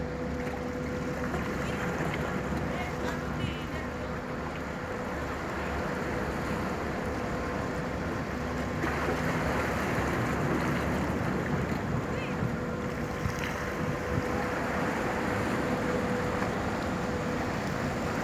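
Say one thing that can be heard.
A large ship's engines drone steadily nearby.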